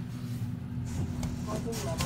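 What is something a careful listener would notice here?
A finger presses an elevator button with a soft click.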